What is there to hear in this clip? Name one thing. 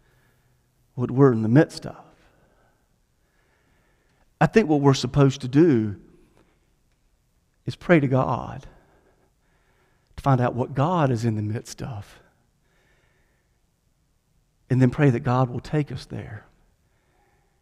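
A middle-aged man speaks with animation through a microphone, in short bursts with pauses, in a reverberant hall.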